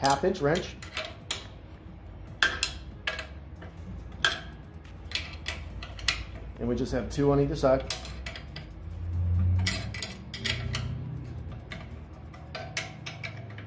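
A wrench clicks and scrapes against metal.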